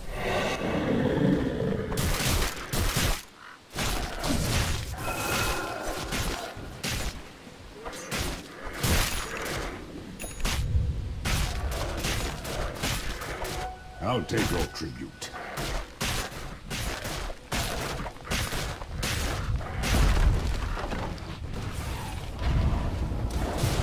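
Magic spells crackle and burst.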